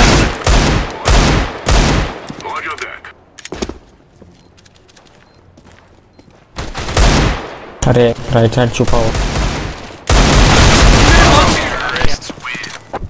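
Pistol shots ring out loudly, one after another.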